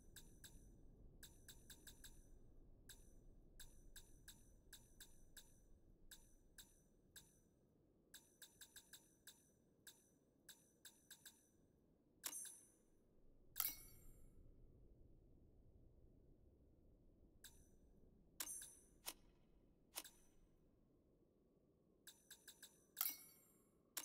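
Short menu clicks tick quickly, one after another.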